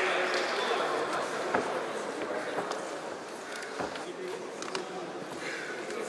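A crowd chatters and murmurs in a large echoing hall.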